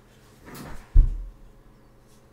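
A plastic figure bumps against a microphone.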